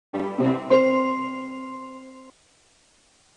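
An electronic chime rings out.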